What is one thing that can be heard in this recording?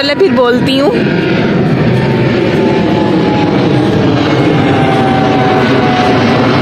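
A jet plane roars overhead.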